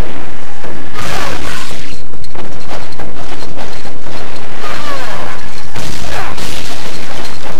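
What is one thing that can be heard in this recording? A sword slashes through the air with a sharp whoosh.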